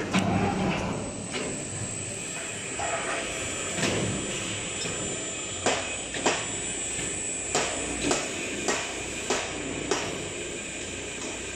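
The electric gear motor of a pipe welding rotator runs and drives its rollers.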